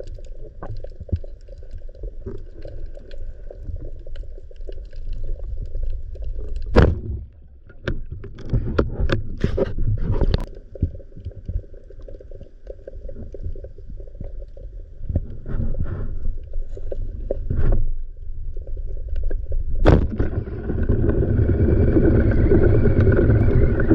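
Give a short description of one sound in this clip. Water rumbles and swishes, muffled underwater.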